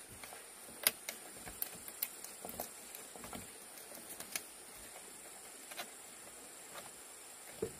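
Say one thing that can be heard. Wire twists and scrapes against bamboo.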